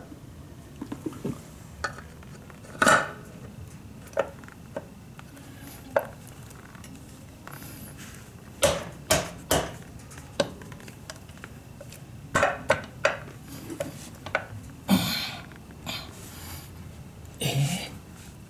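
A metal cover clicks and scrapes as hands fit it into place.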